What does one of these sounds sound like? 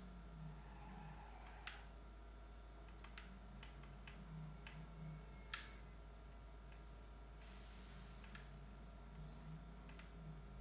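A video game car engine hums steadily through a television speaker.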